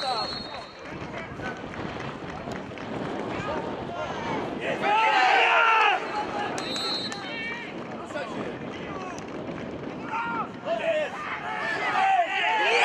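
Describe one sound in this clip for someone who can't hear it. Men shout across an open field outdoors.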